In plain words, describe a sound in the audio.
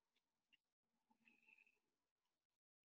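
A woman speaks briefly and quietly over an online call.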